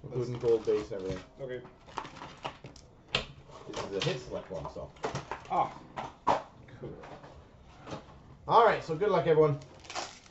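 Hands handle cardboard boxes with soft knocks and scrapes.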